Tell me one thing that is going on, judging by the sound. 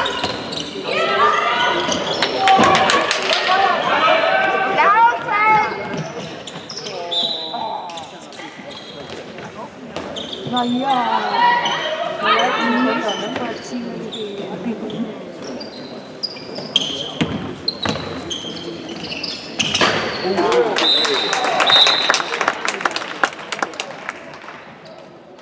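A ball bounces on a hard floor with hollow thuds.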